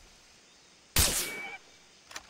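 A rifle fires a single loud shot.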